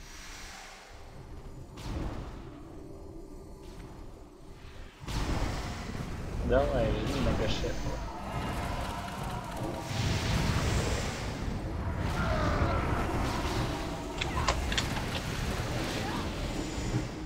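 Magic spells crackle and blast during a battle.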